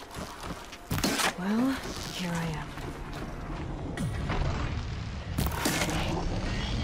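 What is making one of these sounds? An arrow whooshes from a bow and strikes with a sharp crack.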